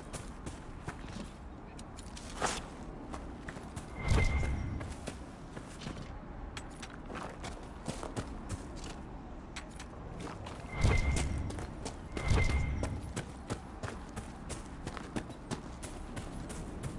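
Footsteps run over grass and soft ground.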